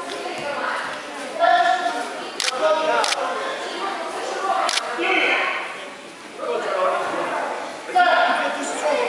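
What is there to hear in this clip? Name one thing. An older man talks calmly, explaining.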